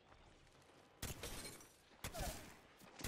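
A gun fires rapid bursts at close range.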